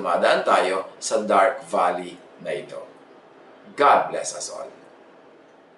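A middle-aged man speaks with animation, close to a microphone.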